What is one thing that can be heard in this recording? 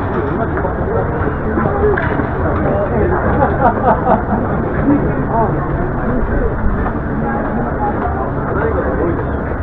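Steam hisses steadily from a vent.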